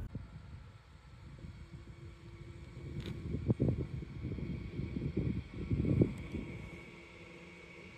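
A train rumbles closer along the tracks.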